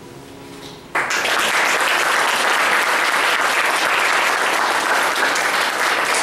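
An audience claps and applauds loudly.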